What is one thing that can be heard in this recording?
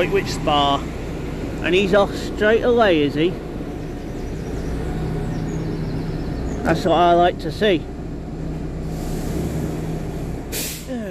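A train engine idles with a steady low hum nearby.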